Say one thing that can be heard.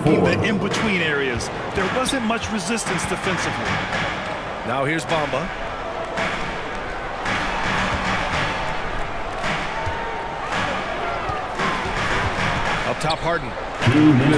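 A large crowd cheers and murmurs in an echoing arena.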